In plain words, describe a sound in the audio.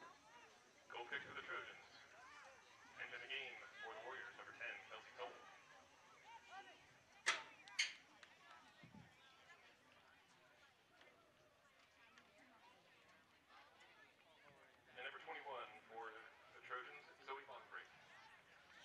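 Players shout and call out across an open field, heard from a distance.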